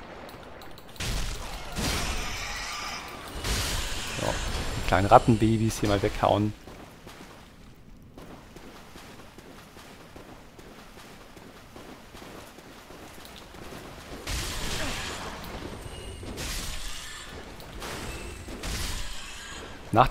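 A sword slashes and clangs against a creature.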